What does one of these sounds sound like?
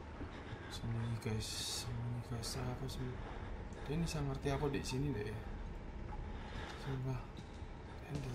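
A young man talks quietly and casually into a nearby microphone.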